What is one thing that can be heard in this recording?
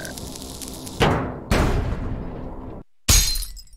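A heavy metal safe crashes down onto a hard floor.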